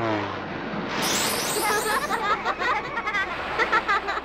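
Bright sparkling chimes twinkle.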